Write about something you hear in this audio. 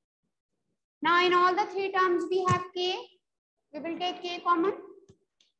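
A woman speaks clearly and steadily, as if teaching.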